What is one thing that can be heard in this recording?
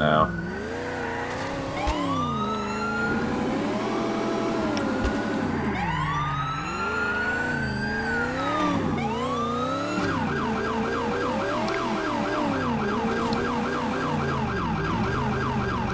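A car engine revs up and down as a car accelerates and shifts gears.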